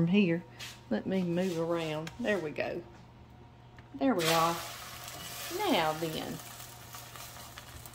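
A metal spatula scrapes against a frying pan.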